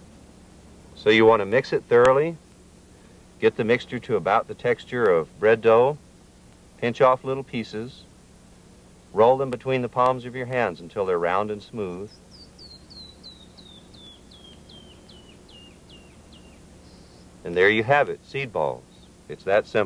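A man speaks calmly, in short phrases with pauses.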